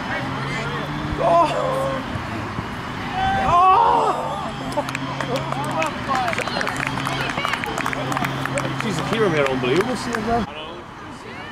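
Young players shout and cheer excitedly in the open air.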